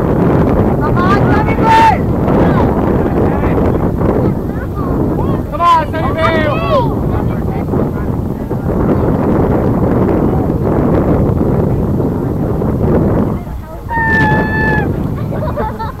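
Adult spectators shout and cheer from a distance outdoors.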